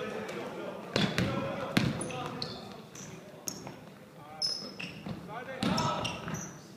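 A basketball bounces with loud thuds on the floor.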